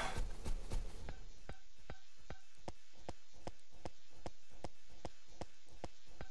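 Footsteps tap quickly on hard ground.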